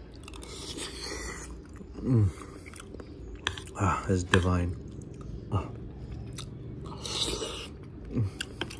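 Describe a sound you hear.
A young man chews and smacks his lips close to a microphone.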